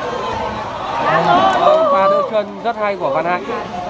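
A man shouts excitedly over the crowd.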